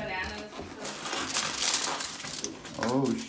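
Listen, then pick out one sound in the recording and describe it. Aluminium foil crinkles as a hand handles it.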